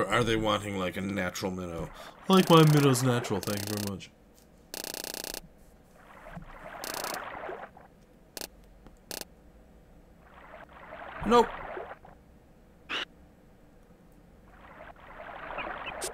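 A fishing reel clicks as line winds in.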